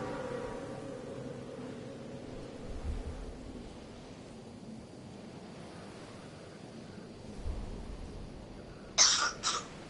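Wind rushes steadily past a falling figure.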